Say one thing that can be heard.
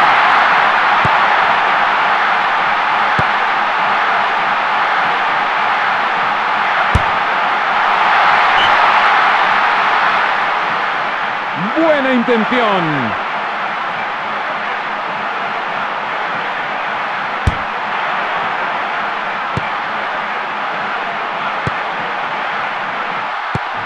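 A football is kicked with short, dull thuds.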